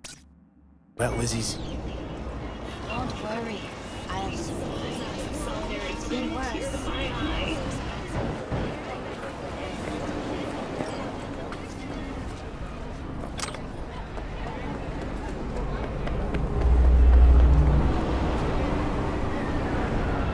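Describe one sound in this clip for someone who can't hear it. A busy city crowd murmurs and bustles all around.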